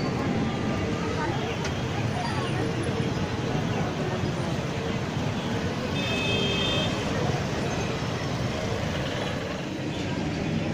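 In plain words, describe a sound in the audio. Busy street traffic rumbles and hums nearby.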